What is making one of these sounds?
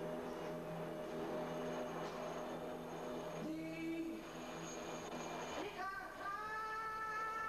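A singer sings loudly through speakers outdoors.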